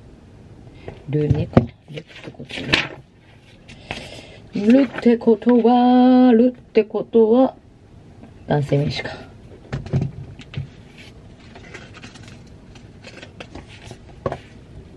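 Pages of a magazine rustle as they turn.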